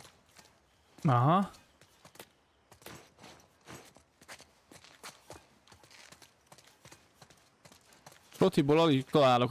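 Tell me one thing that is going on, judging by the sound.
A man speaks loudly and with animation into a nearby microphone.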